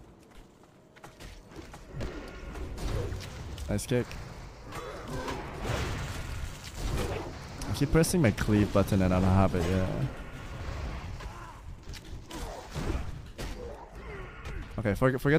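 Video game combat sounds clash and thud.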